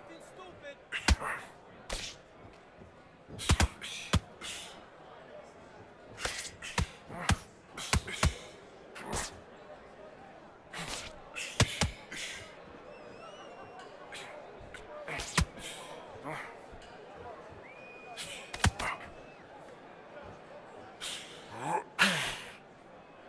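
Boxing gloves thud sharply against a body in quick bursts.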